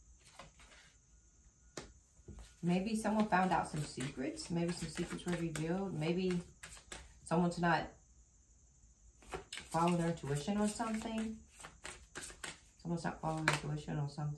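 A deck of cards is shuffled in the hands.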